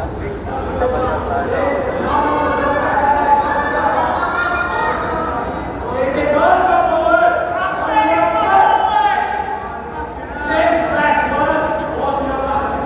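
Men and women in the crowd shout loudly and eagerly.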